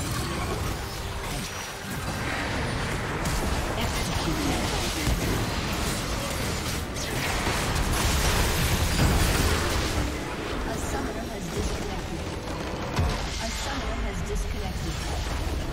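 Magic spells and weapon attacks crackle, whoosh and clash in a busy fight.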